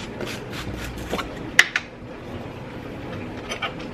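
A jar lid clicks and scrapes as it is unscrewed.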